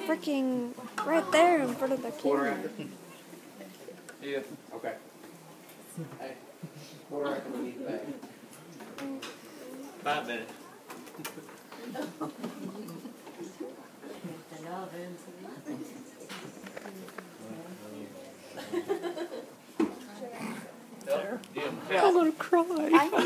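Several young adults talk and chatter nearby.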